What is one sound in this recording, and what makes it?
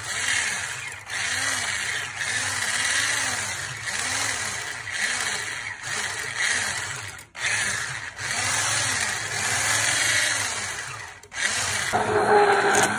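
An electric hand mixer whirs as it whisks batter in a bowl.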